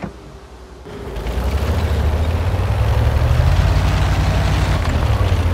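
A tank engine rumbles loudly and steadily.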